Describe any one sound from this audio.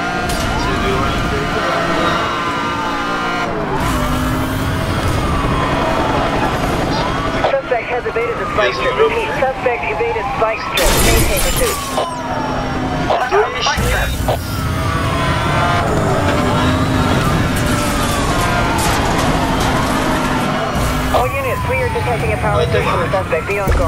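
A police siren wails and sweeps up and down.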